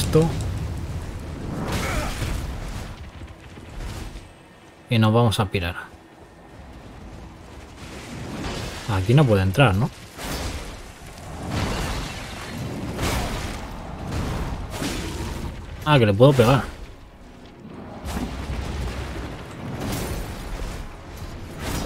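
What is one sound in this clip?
A sword swishes through the air and strikes.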